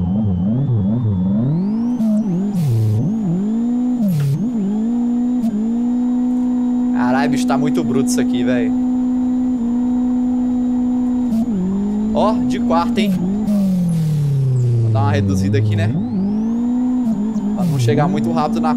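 A racing car engine revs up and down through gear changes, loud and close.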